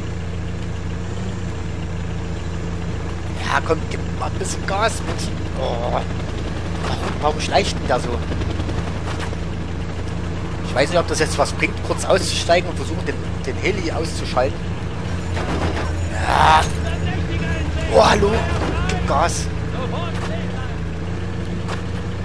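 A jeep engine hums steadily as it drives over a rough dirt track.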